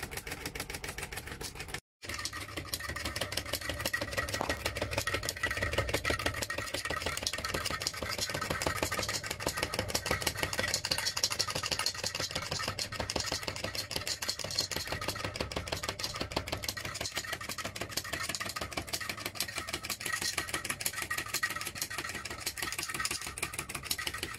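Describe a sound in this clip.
A wooden crank mechanism knocks and clatters rapidly as it rocks back and forth.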